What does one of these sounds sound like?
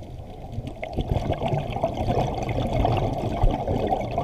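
Air bubbles from a diver's breathing gear gurgle and rumble underwater.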